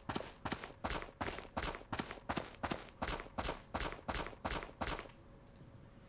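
Footsteps tread at a steady pace on grass.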